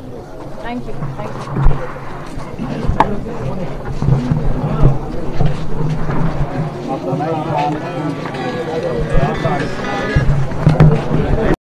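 A crowd of men chatter and murmur around.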